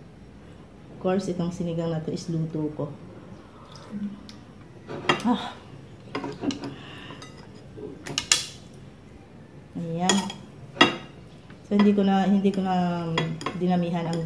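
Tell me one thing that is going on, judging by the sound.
A middle-aged woman talks calmly and chattily close by.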